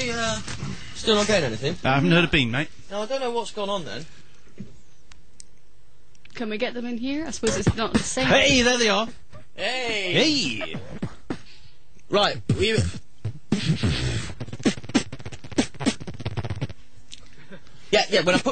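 A man talks with animation into a microphone, close up.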